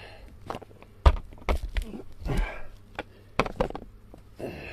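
Knocks and thumps sound as the phone is bumped and handled.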